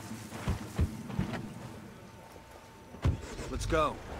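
A car door slams shut.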